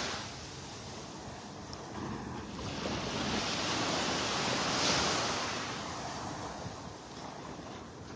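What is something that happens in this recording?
Small waves lap gently on the shore, swelling and easing.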